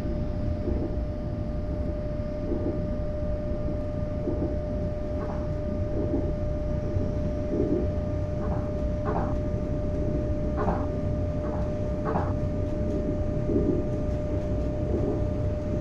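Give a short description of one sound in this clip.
A steady electric whine hums inside a train cab.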